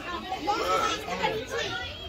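A little girl laughs.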